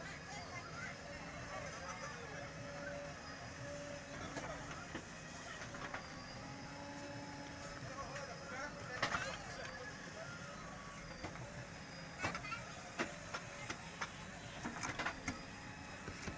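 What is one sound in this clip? A diesel engine rumbles steadily.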